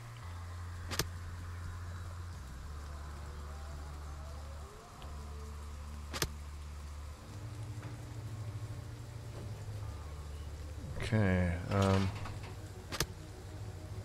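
Game interface clicks sound now and then.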